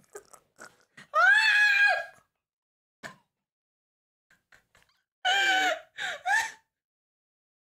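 A young woman laughs loudly and shrieks.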